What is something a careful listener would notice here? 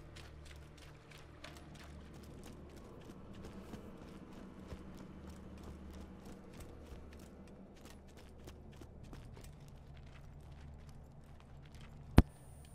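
Footsteps tread quickly and steadily on a hard floor.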